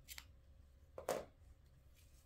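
Scissors snip through yarn.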